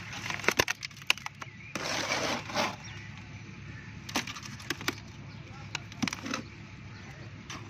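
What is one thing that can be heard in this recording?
Wet concrete slaps and squelches as it is pressed into a metal mould by hand.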